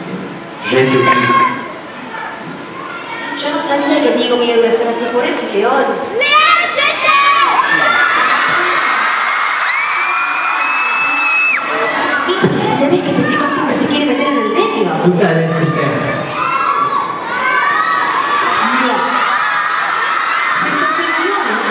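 A young woman sings over a loudspeaker in a large echoing hall.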